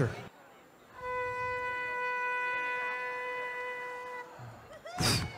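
A woman blows a ram's horn with a long, steady, clear note.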